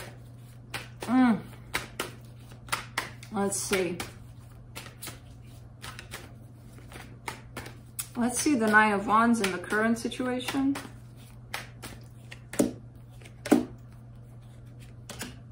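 Playing cards riffle and tap as they are shuffled.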